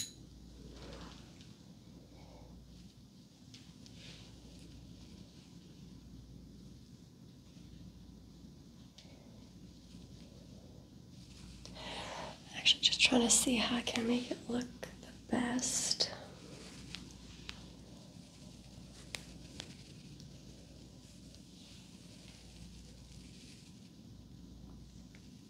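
Hands and a comb rustle softly through long hair.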